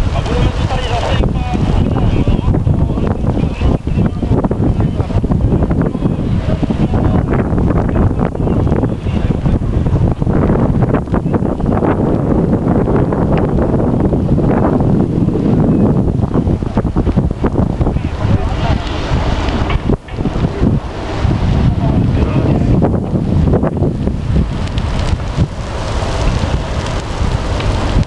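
A large fire roars and crackles loudly outdoors.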